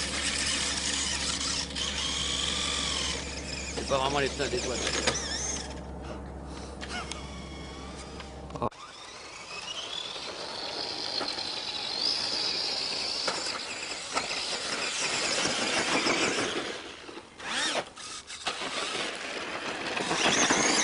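A small electric motor whines, rising and falling in pitch as a toy car races.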